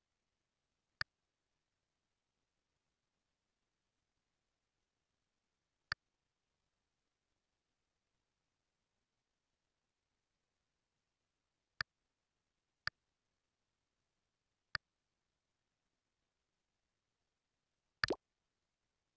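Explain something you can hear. Short electronic clicks sound as game menu pages turn.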